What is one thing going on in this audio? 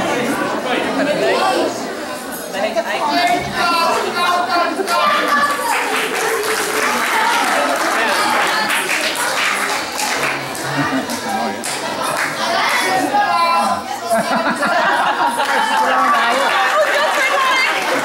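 A crowd of children chatters and murmurs in a large echoing hall.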